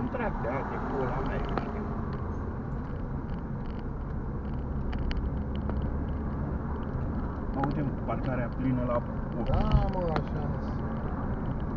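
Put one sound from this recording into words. Road noise rumbles steadily from inside a moving car.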